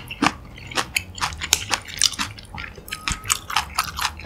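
Wooden chopsticks lift sausages out of a pan of thick sauce with wet squelches.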